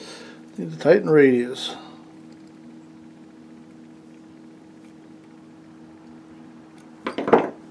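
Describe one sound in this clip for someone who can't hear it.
Pliers click and scrape against a small metal pin.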